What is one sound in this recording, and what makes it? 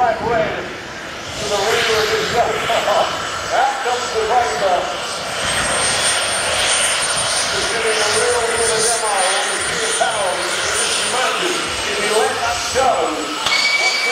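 A jet engine roars loudly with a steady high whine.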